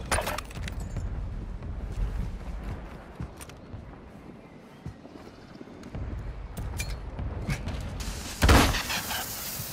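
Footsteps crunch over dirt and gravel.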